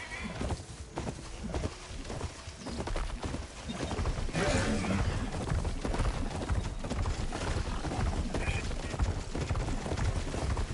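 A mechanical beast's feet thud rapidly on the ground as it runs.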